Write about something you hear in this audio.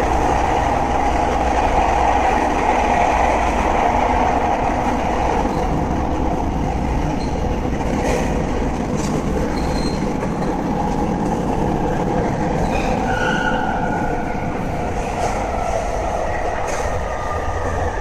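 An electric train hums steadily while standing at a platform.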